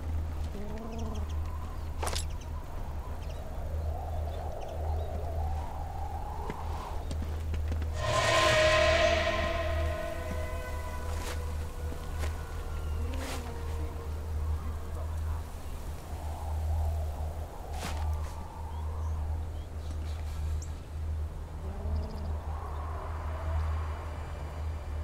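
Footsteps scuff softly on stone.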